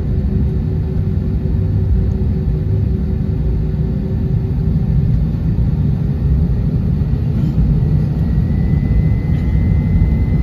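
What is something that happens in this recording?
The jet engines of an Airbus A321 airliner rumble and whine as it taxis, heard from inside the cabin.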